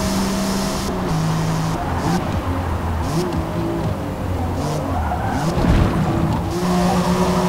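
Exhaust pops and crackles as a car slows for a corner.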